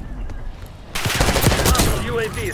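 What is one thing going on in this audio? A rifle fires a rapid burst of loud shots.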